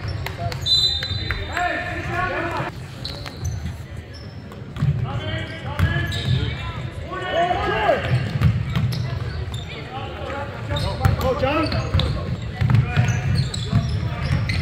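Boys on the bench and spectators talk and call out in a large echoing gym.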